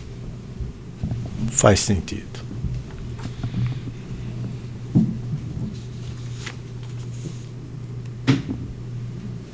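An elderly man speaks hesitantly into a microphone.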